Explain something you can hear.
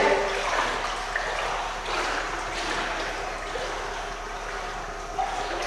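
Water splashes and sloshes as a person swims.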